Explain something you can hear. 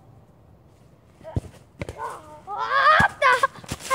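A ball thumps when kicked.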